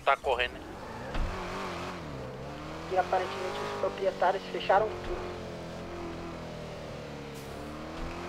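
A car engine in a video game hums and rises and falls in pitch as the car drives.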